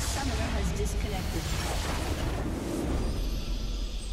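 Magic blasts burst and crackle loudly.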